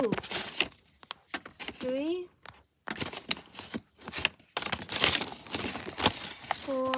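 Plastic toys and fluffy fabric rustle and clatter as a hand rummages through them.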